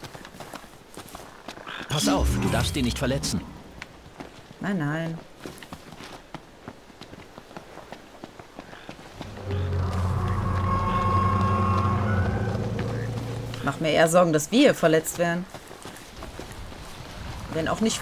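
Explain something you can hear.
Footsteps run over grass and rock.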